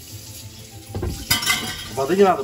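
A glass lid clinks down onto a metal frying pan.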